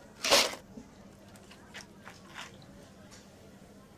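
Fizzy cola pours over ice and crackles.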